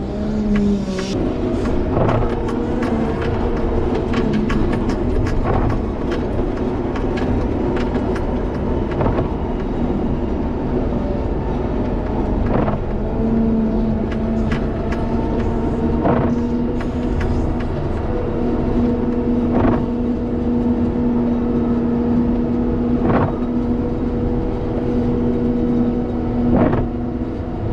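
Metal clanks and knocks sharply from time to time.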